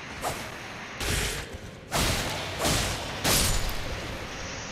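Swords clash and slash with sharp metallic swishes.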